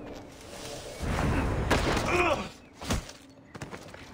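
A body tumbles and thuds down stone steps.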